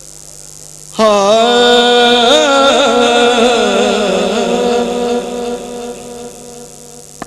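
A young man sings loudly through a microphone and loudspeakers, holding long wavering notes.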